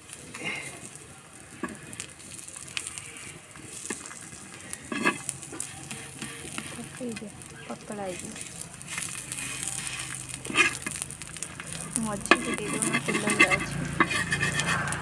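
Fritters sizzle in hot oil.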